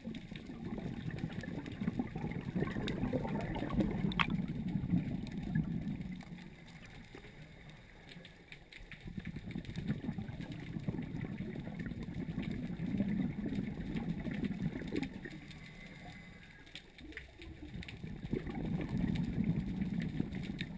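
Scuba divers breathe out underwater, with bubbles rumbling and gurgling in long bursts.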